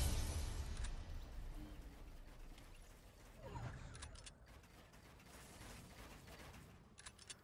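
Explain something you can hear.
Building pieces snap into place with sharp clacks.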